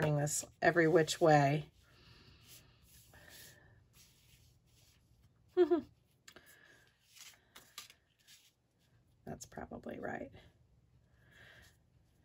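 Sheets of paper slide and rustle softly on a table.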